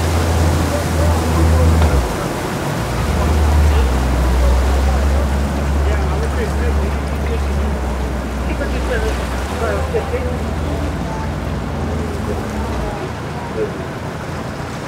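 Water splashes and churns along a boat's hull.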